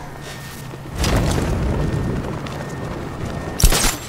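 Wind rushes loudly past while gliding through the air.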